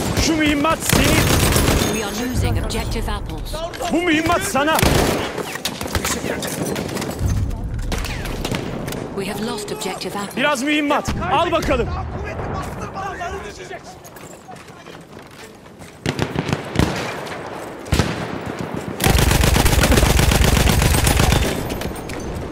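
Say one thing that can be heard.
A machine gun fires loud rapid bursts.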